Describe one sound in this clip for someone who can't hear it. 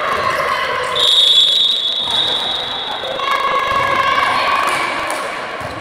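Sneakers squeak sharply on a court in an echoing hall.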